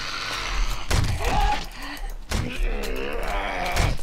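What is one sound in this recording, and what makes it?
Heavy blows thud repeatedly against a body.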